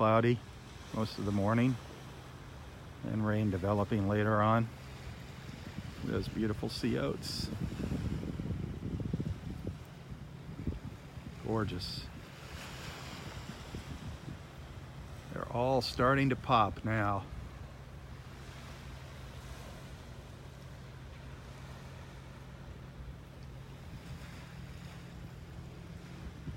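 Wind gusts outdoors and rustles grass and leaves.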